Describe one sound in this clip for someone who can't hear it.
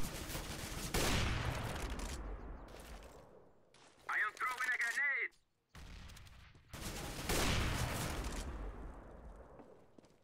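A sniper rifle fires loudly and its boom echoes away.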